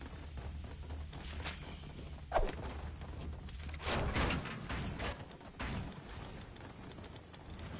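Short clattering thuds of building pieces snapping into place ring out in quick bursts.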